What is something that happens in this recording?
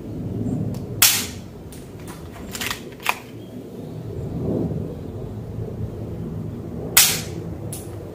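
An air pistol fires with a sharp snap.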